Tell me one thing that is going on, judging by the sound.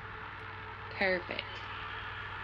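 A young girl speaks briefly into a close microphone.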